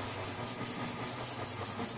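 An airbrush hisses as it sprays paint.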